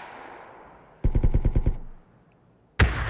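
A quick burst of rapid shots rattles.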